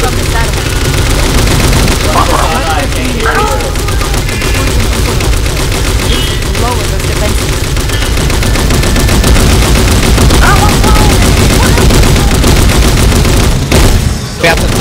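Rapid gunfire blasts continuously.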